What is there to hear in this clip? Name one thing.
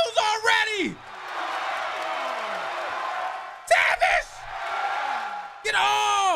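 A crowd cheers and roars steadily.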